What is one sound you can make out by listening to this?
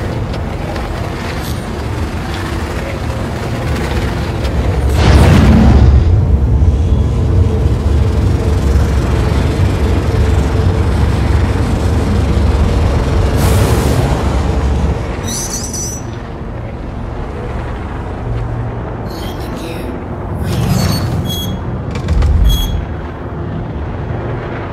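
A spacecraft engine rumbles deeply and steadily, swelling louder for a while before easing off.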